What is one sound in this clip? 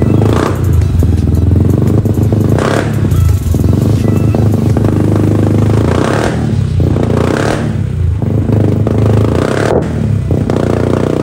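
A scooter engine idles with a loud, throaty exhaust rumble.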